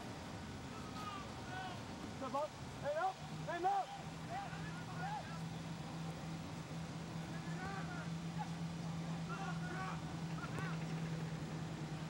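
Players shout to each other across an open field in the distance.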